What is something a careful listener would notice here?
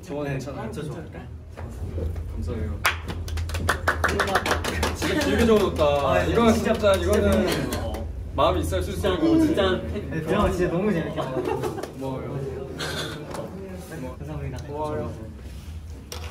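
Young men talk and laugh together nearby.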